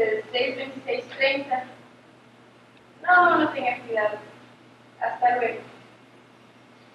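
A young woman talks into a telephone in a hall, with pauses between phrases.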